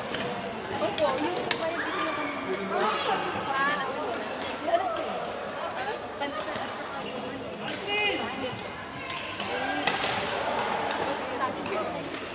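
Shuttlecocks are struck with rackets in sharp pops, echoing around a large hall.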